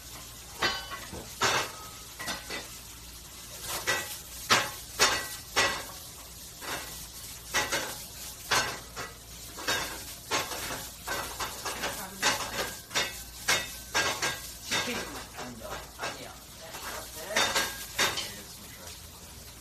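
Metal pans and utensils clatter and clink nearby.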